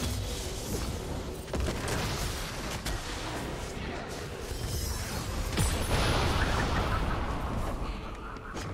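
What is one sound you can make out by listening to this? Melee hits thud in quick succession during a game fight.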